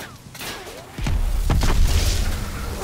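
Bullets ping and clatter off metal.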